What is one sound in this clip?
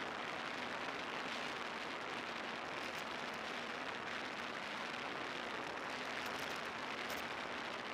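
Wind rushes steadily past a moving vehicle.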